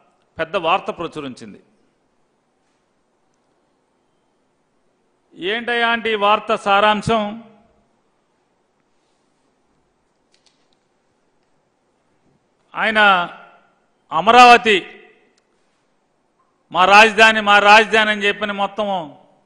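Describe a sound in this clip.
A middle-aged man speaks firmly into a microphone, in bursts with pauses.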